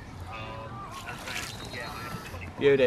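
Water splashes as a fish is let go.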